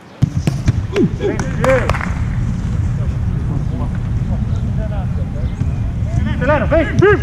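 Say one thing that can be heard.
Young people shout and cheer outdoors.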